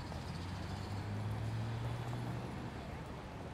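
Traffic rumbles steadily on a busy road.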